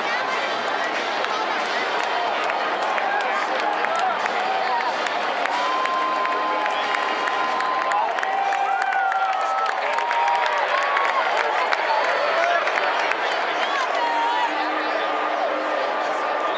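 Fans whistle loudly in the crowd.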